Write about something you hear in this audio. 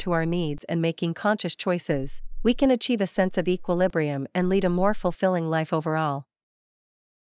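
A woman speaks calmly and clearly, as if reading out.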